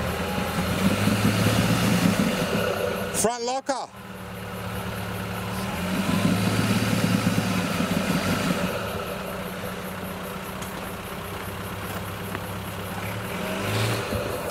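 Tyres grind and crunch over rock.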